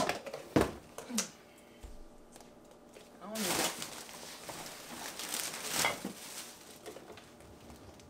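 Jars and bottles clink in a refrigerator.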